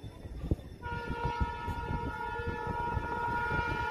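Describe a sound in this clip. A train rumbles as it approaches.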